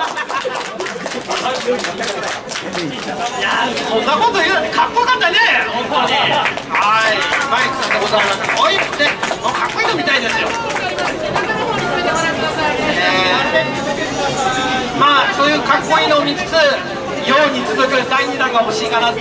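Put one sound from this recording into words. A man speaks energetically through a microphone over loudspeakers.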